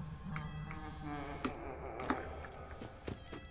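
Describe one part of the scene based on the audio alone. A door creaks open softly.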